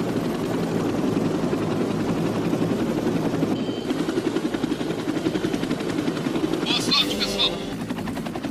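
A helicopter's rotor thumps loudly nearby.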